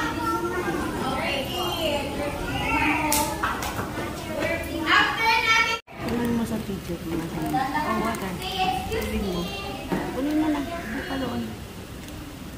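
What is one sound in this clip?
A woman speaks to a group of children in an echoing room.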